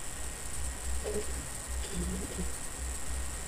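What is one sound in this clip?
A young woman speaks briefly and quietly over an online call.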